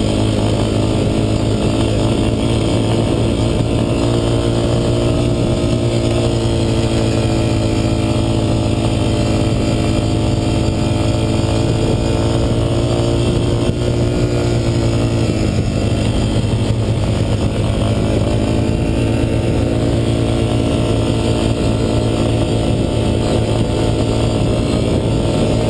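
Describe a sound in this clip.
A quad bike engine roars up close, rising and falling in pitch.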